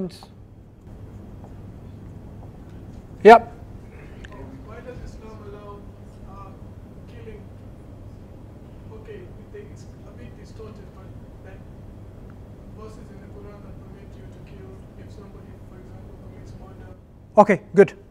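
A man speaks calmly, lecturing.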